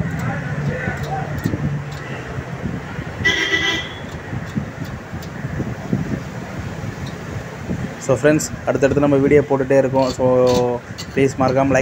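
A metal bolt clinks and rattles against a bracket.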